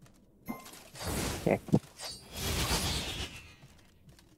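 Magical swooshes and blasts burst out in a game.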